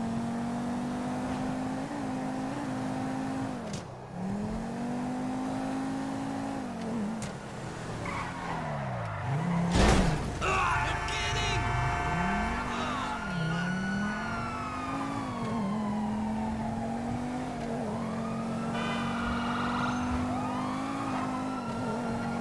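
A sports car engine hums and revs up and down as it drives.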